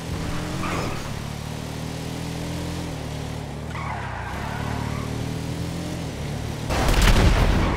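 A race car engine roars and shifts pitch as the car speeds along.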